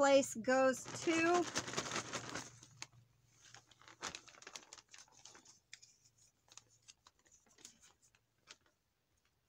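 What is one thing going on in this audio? A plastic bag crinkles as hands handle it.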